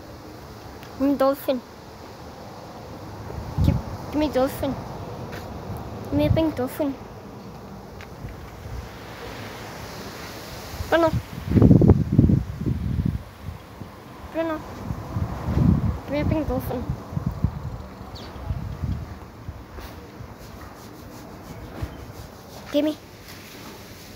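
A rubber squeaky toy squeaks in short bursts as a small terrier bites it.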